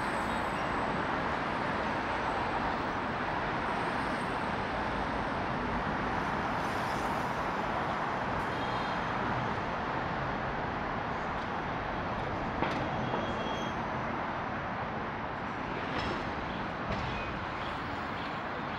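City traffic rumbles steadily under an overpass.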